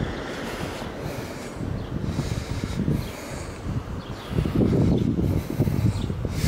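Wind blows outdoors, rumbling across the microphone in gusts.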